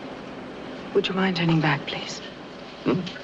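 A woman asks a question close by.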